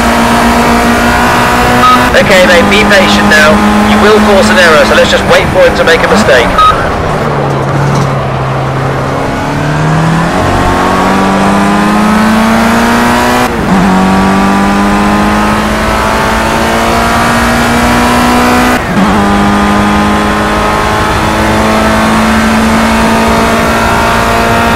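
A racing car engine whines at high revs, dropping in pitch under braking and climbing again through quick gear changes.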